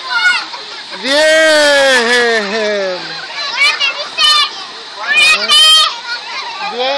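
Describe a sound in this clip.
Children laugh playfully.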